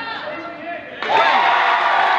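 A crowd cheers in an echoing gym.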